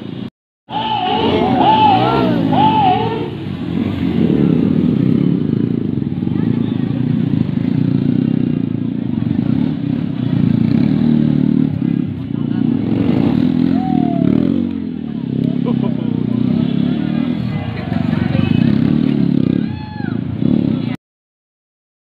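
A motorcycle engine revs and roars close by.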